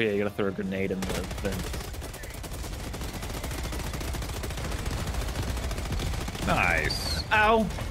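Gunfire rattles steadily in a game.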